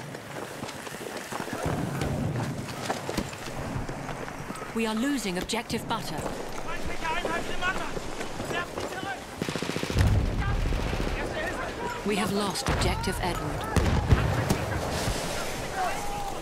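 Explosions boom heavily, some near and some far off.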